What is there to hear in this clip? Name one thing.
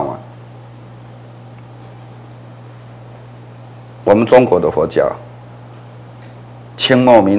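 An elderly man speaks calmly and deliberately into a close microphone.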